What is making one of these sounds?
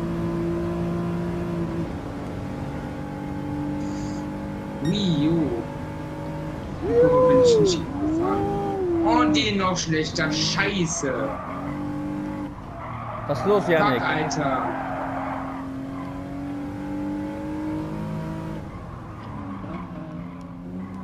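A car engine drones steadily, rising and dropping in pitch as gears change.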